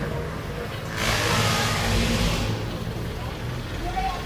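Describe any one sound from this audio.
A jeepney engine roars as it drives past close by.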